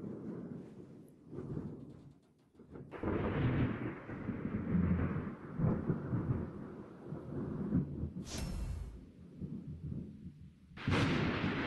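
A warship's engine rumbles low over the sea.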